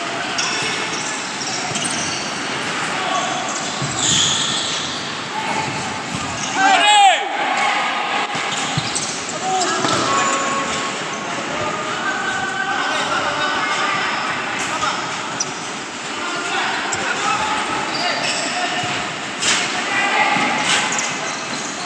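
Players shout and call out in a large echoing hall.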